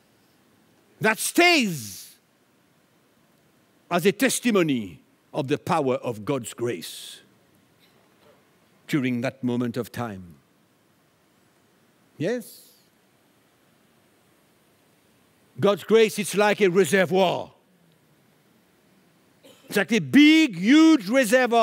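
An older man speaks with animation into a microphone, pausing between phrases.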